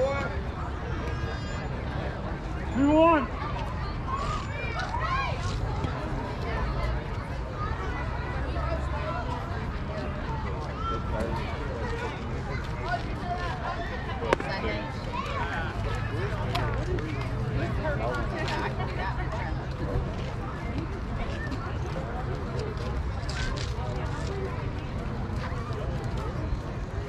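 Young girls shout and cheer outdoors.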